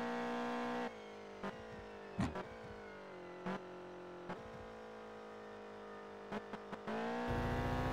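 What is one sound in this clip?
Tyres squeal as a car slides through a corner.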